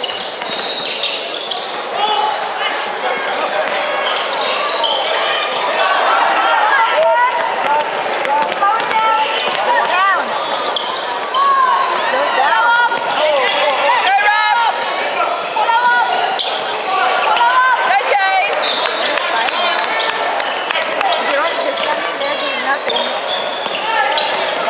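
A crowd of spectators cheers and talks.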